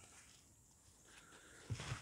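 Fabric rustles and brushes close by.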